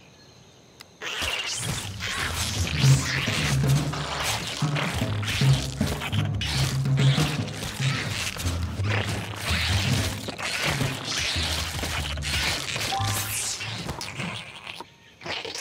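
Creatures snarl and screech as they fight.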